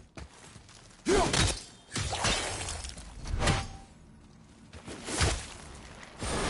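Heavy blows strike and crack a hard shell.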